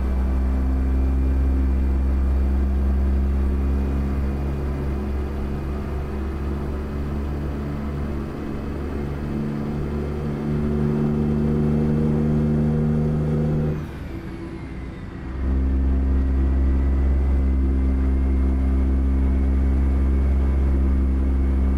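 A truck's diesel engine rumbles steadily, dropping off briefly as the gears shift, then pulling again.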